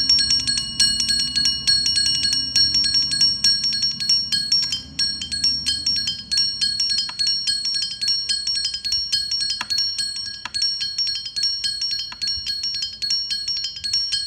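A vibraphone rings with quick, bright mallet strokes outdoors.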